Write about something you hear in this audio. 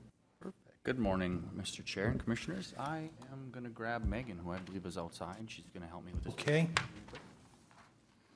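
A man speaks calmly through a microphone in a large room.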